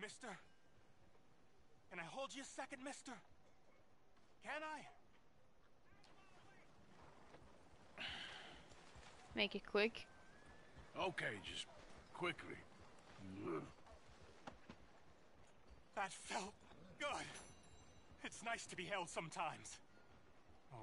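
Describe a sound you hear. A man pleads in a rough voice.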